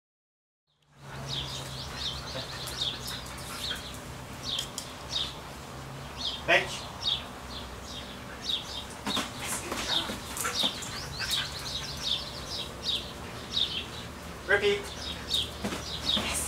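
A young man gives short commands to a dog.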